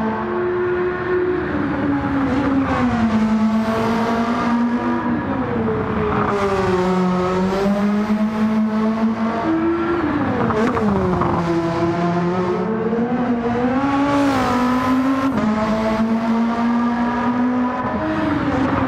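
A racing car engine roars loudly, rising in pitch and dropping with each gear change.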